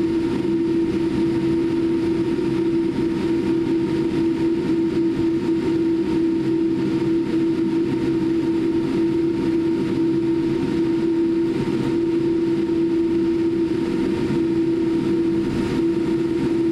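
Jet engines hum steadily inside an aircraft cabin.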